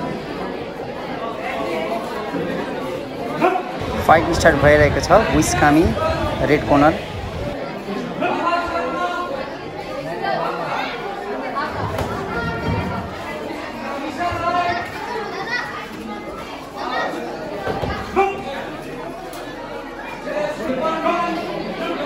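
A crowd of young people chatters and shouts in an echoing hall.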